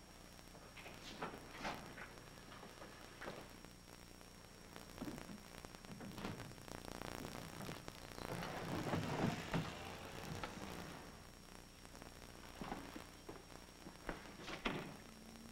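Footsteps walk slowly along a hallway.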